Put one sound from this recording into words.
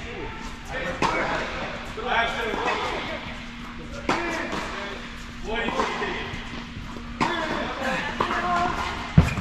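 Tennis balls are struck sharply with rackets in a large echoing hall.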